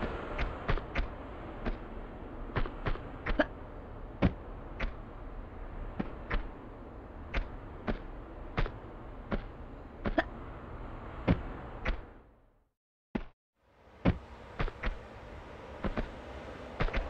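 Footsteps tap on stone, echoing in a cave.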